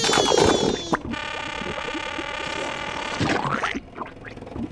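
A machine hums with a steady musical tone.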